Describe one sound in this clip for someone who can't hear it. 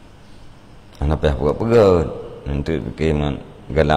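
A middle-aged man reads aloud calmly into a nearby microphone.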